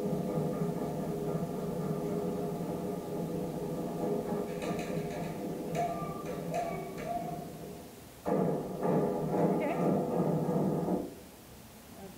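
Drumming and chanting music plays through loudspeakers.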